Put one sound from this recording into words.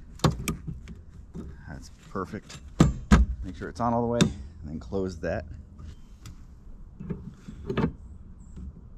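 A windshield wiper part clicks and snaps into place.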